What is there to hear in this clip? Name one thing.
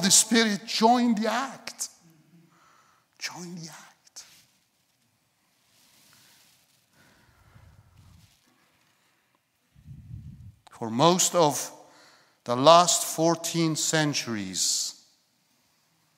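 A middle-aged man speaks calmly and with feeling through a microphone, in a large room.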